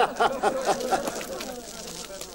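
An elderly man laughs heartily close by.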